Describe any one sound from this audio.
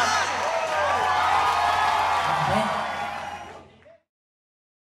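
A live band plays music loudly.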